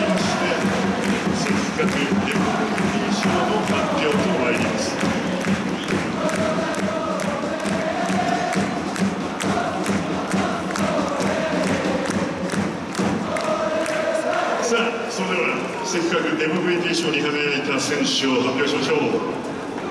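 A large stadium crowd chants and sings in unison.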